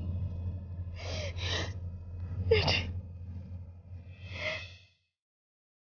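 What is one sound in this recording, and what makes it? A young woman speaks softly and tearfully close by.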